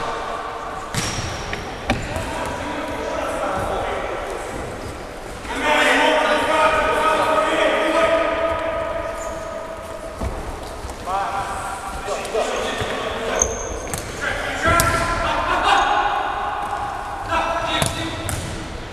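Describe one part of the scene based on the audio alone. A ball is kicked with dull thuds in an echoing hall.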